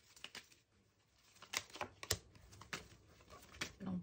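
A card is laid down on a wooden table.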